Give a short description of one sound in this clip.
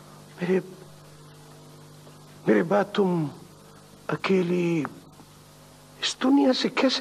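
A middle-aged man speaks in short, tense bursts nearby.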